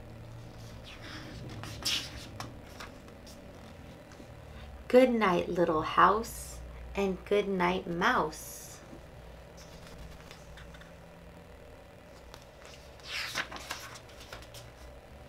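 Book pages turn with a soft rustle.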